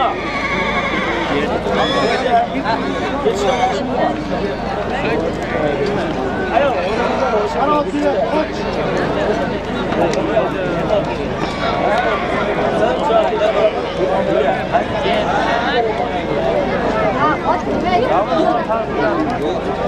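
Many horses gallop and trample on dirt.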